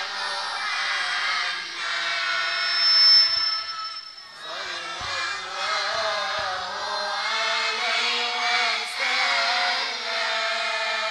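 An elderly man speaks with animation into a microphone, heard through loudspeakers.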